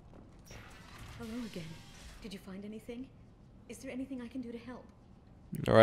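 A woman asks questions in a friendly voice.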